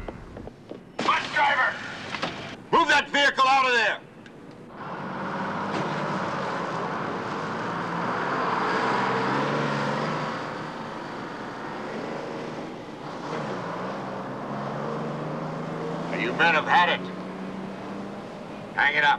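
A man shouts loudly through a megaphone.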